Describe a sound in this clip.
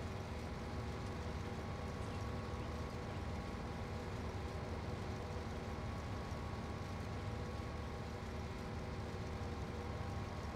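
A combine harvester threshes crop with a steady whirring.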